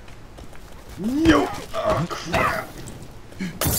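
A wild man shrieks loudly nearby.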